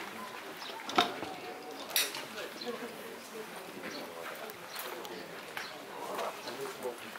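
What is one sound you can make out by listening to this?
Golf clubs strike balls with sharp clicks.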